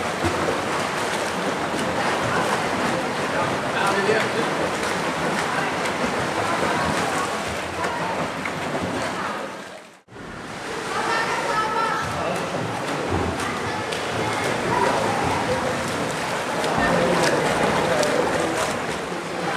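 Swimmers splash and kick through the water in a large echoing hall.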